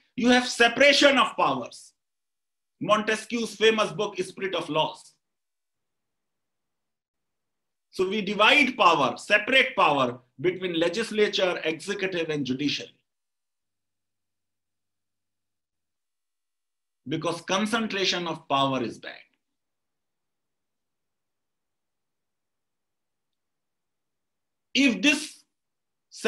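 A middle-aged man speaks with animation over an online call, in bursts with pauses.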